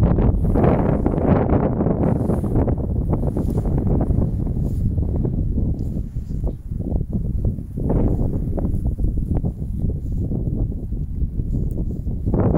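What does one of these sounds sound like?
A dog pants heavily nearby.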